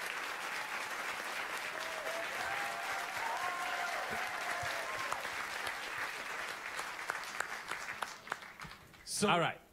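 A large audience claps and cheers.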